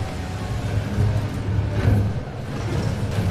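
A car crashes with a scraping metal impact.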